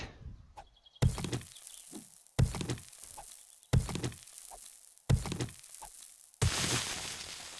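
A stone tool strikes rock with heavy, evenly spaced thuds.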